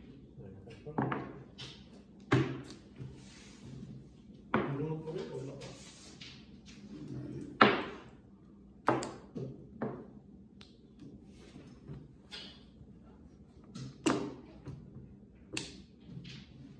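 Plastic tiles clack sharply on a table as they are set down.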